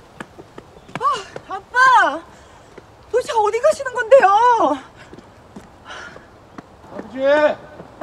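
A middle-aged woman calls out loudly and anxiously.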